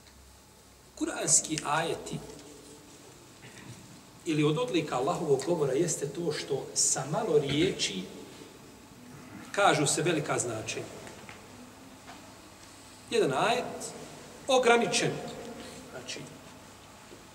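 A middle-aged man speaks calmly and earnestly into a close microphone, in short bursts with pauses.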